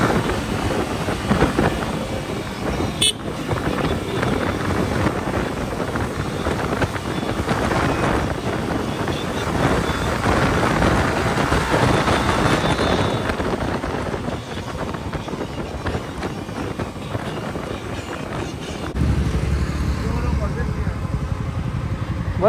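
A motorcycle engine roars steadily up close.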